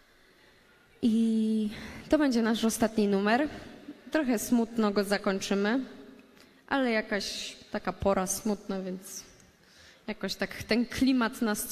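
A young woman sings through a microphone in a large hall.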